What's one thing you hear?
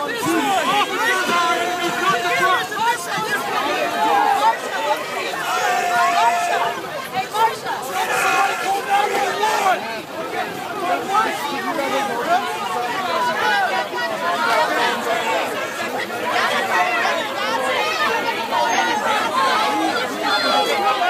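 A crowd of men and women shouts and chants loudly outdoors.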